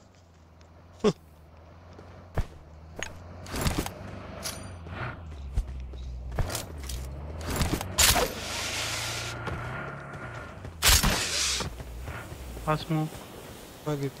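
Gunshots crack in sharp, scattered bursts.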